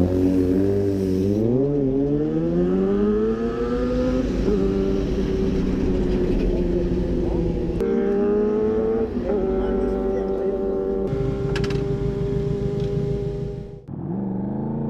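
A motorcycle engine revs up and idles close by.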